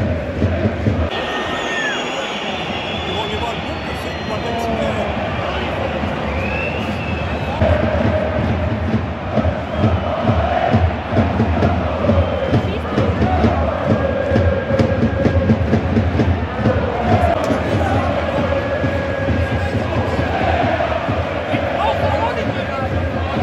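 A big crowd roars and murmurs in an open stadium.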